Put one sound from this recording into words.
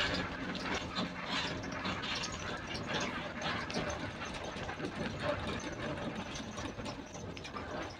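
A bus engine drones, heard from inside the cabin.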